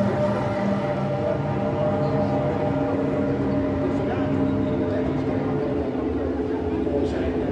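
Race car engines hum and idle steadily nearby.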